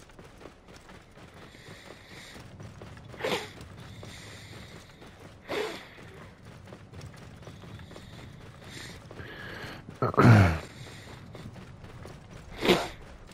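A horse gallops with hooves thudding on soft sand.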